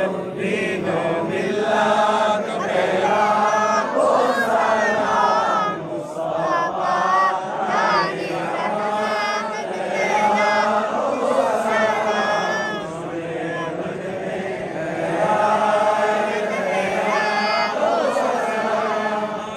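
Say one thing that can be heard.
A group of men chant together in unison, close by.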